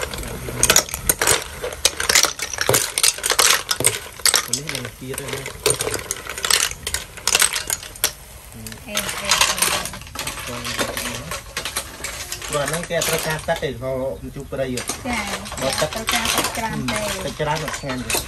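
A metal ladle scrapes and knocks against a pot.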